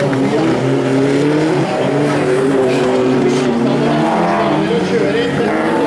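A second rally car engine revs loudly and changes pitch through the bend.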